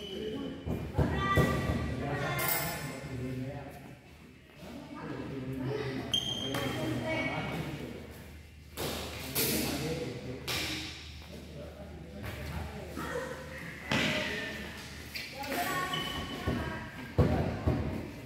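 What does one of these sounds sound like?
Shuttlecocks are struck with rackets, sharp pops echoing in a large hall.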